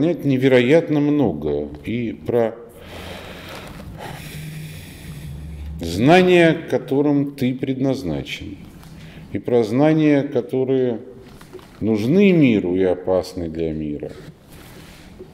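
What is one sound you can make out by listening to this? A middle-aged man speaks calmly and with pauses, close by.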